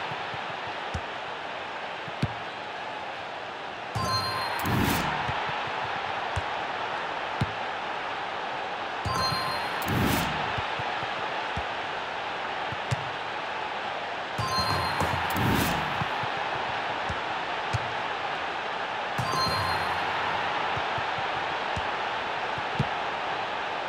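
A football is kicked with a dull thud, several times.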